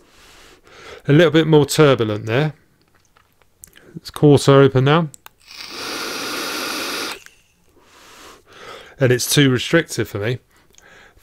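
A man speaks close to a microphone in short, animated bursts.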